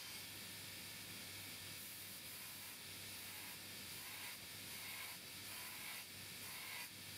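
A metal file scrapes across a steel edge in repeated rasping strokes.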